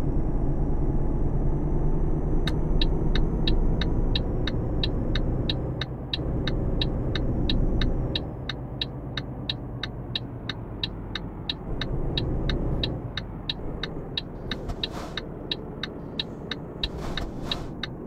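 A truck engine rumbles steadily, growing quieter as the truck slows.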